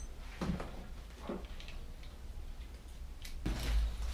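Small objects knock and rattle as a man handles them.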